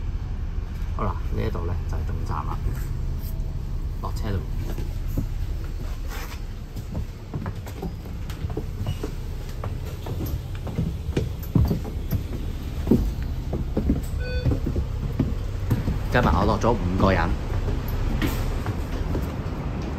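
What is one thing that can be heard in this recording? A bus rattles and clunks as it moves.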